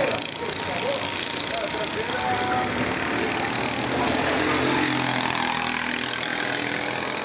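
A go-kart engine buzzes loudly as the kart races past.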